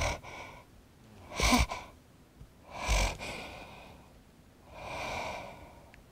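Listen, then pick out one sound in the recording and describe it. A doll bumps softly against a wooden stage floor.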